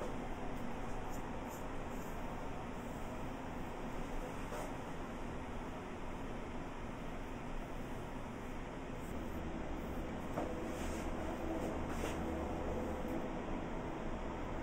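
A comb rustles softly through hair close by.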